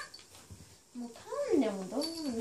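A corgi puppy whimpers.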